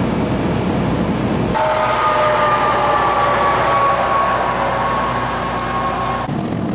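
Tyres hum steadily on a highway as a vehicle drives along.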